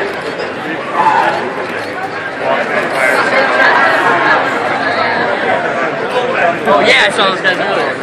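People in a crowd cheer and shout.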